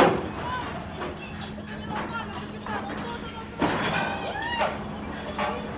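A ship's engine hums steadily nearby.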